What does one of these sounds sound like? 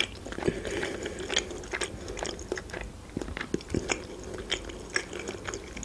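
A fork clinks lightly against a wooden tray.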